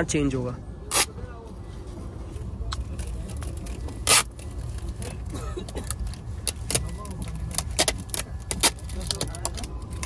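Sticky tape crackles and snaps as it is pulled from a roll.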